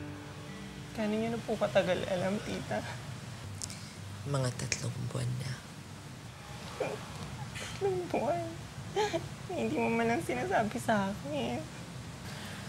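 A young woman speaks close by in a tearful, trembling voice.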